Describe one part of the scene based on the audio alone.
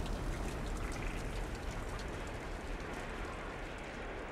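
Footsteps tap softly on a ladder rung by rung.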